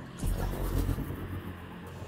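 A blast booms with a deep rumble.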